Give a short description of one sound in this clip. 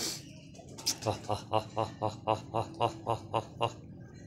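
Pigeons coo in a steady, repeated rhythm close by.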